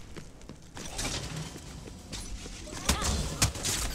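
Energy blasts fire and crackle in short bursts.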